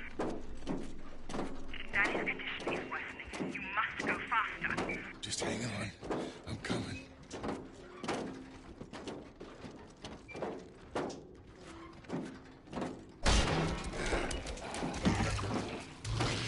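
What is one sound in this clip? Heavy footsteps clank on a metal floor at a steady pace.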